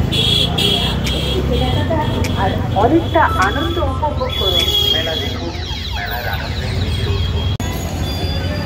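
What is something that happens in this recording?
An auto rickshaw engine rumbles steadily up close.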